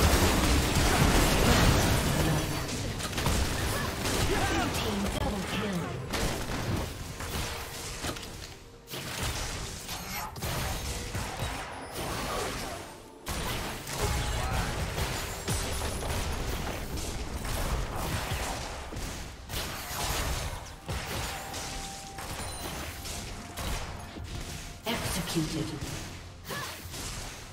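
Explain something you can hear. Fantasy battle sound effects clash, crackle and burst.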